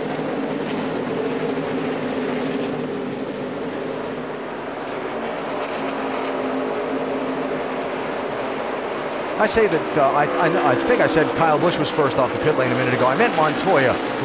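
Many racing car engines roar loudly together as the pack speeds past.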